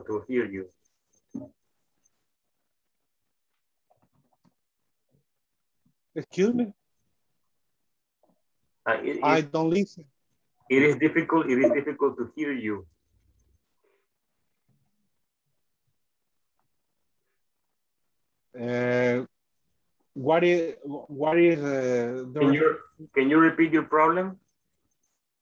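A man talks over an online call in bursts, with pauses between.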